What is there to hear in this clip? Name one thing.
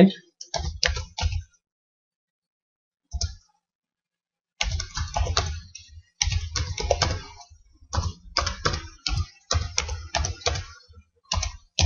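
Keyboard keys click rapidly as someone types.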